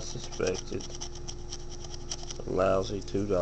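A coin scratches quickly across a card.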